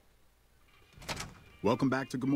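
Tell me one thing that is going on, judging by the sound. A man speaks calmly in a gruff voice.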